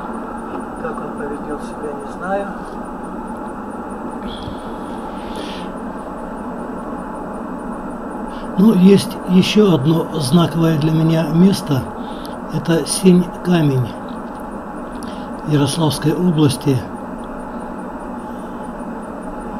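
A car's engine hums and its tyres roll steadily on a highway.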